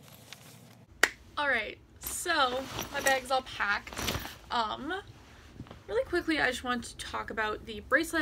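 A young woman talks casually and close by.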